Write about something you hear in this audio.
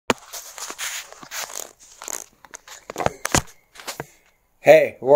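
Clothing rustles and bumps close by.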